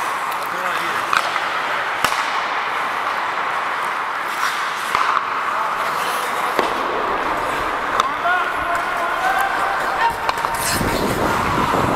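Hockey sticks clack against a puck with sharp knocks.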